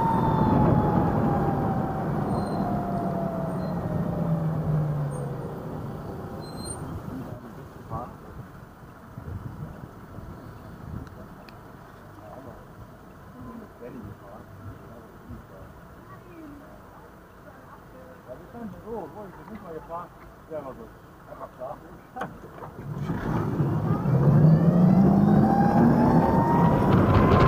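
Wind rushes past loudly while riding.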